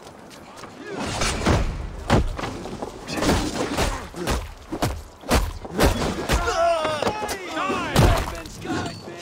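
Blades clash and strike with heavy blows.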